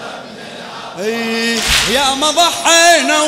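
A man chants loudly into a microphone.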